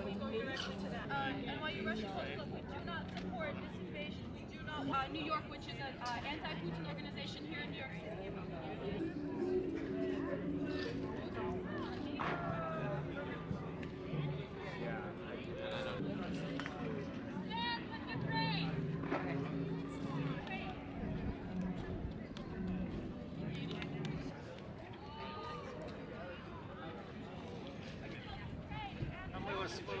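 A crowd of men and women talk outdoors.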